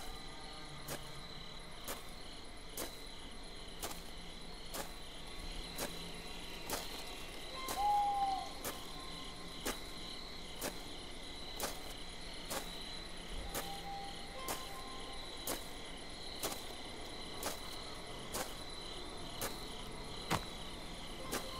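Footsteps thud steadily on dirt as a person runs.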